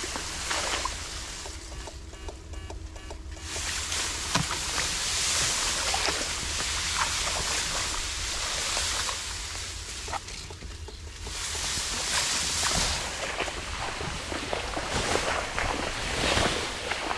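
Tall grass rustles and swishes as a person pushes through it.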